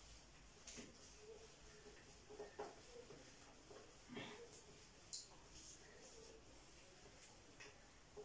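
A cloth wipes across a whiteboard.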